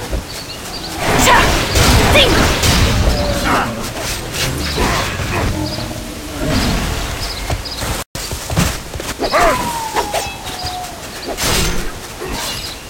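Magic blasts and weapon strikes crash in a fight.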